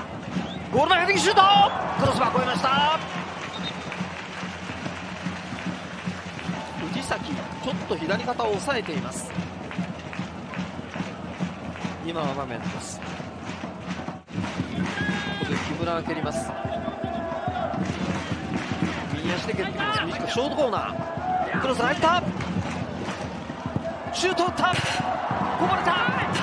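A stadium crowd cheers loudly outdoors.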